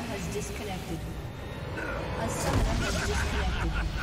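Spell effects crackle and whoosh in a fight.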